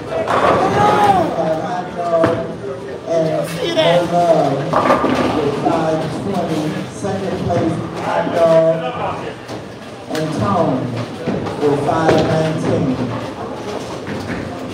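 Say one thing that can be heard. A man talks and laughs with animation close by.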